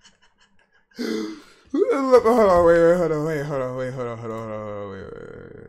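A young man speaks with animation into a microphone, his voice dropping and trailing off.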